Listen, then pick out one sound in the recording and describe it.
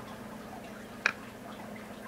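A small lizard snaps at food with a soft tap.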